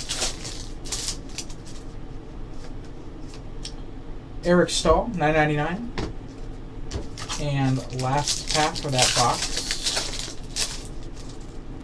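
Plastic wrappers crinkle and rustle as packs are torn open.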